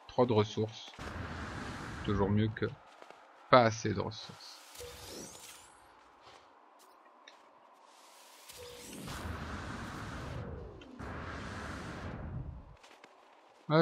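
A jetpack hisses in short bursts.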